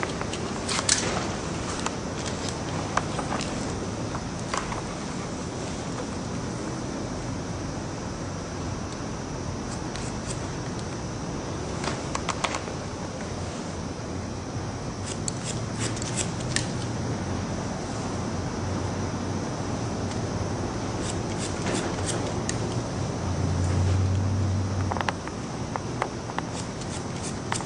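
Scissors snip through hair with quick, crisp clicks.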